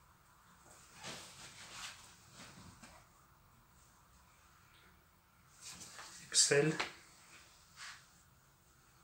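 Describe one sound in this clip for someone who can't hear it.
Cloth rustles as garments are handled and laid down.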